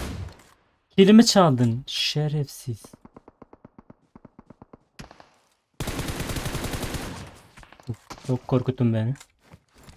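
A man speaks with animation close to a microphone.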